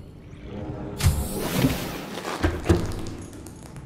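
A heavy hatch opens with a hiss and a deep clunk.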